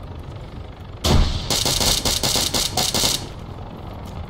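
A rifle fires a rapid burst of shots at close range.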